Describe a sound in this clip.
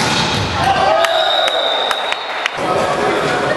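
A volleyball bounces several times on a hard floor.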